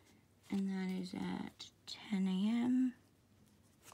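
A felt-tip marker squeaks faintly on paper.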